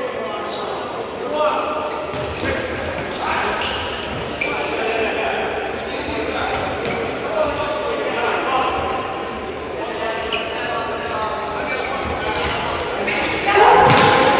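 Athletic shoes squeak on an indoor court.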